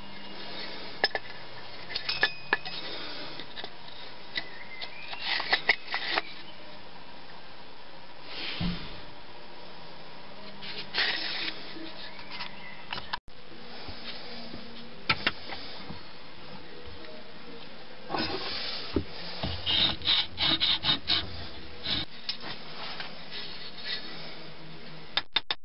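Wooden and metal parts knock and clatter as they are handled close by.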